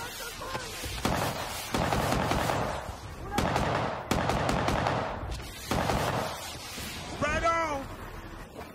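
Explosions boom one after another, loud and close.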